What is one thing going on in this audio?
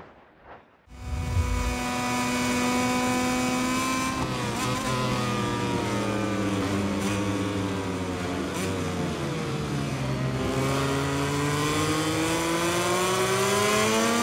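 A racing motorcycle engine roars, its pitch rising and falling as the bike speeds up and slows.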